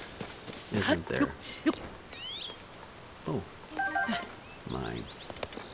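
A person scrambles and climbs up tree bark.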